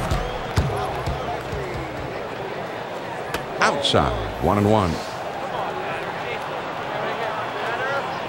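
A crowd murmurs steadily in a large stadium.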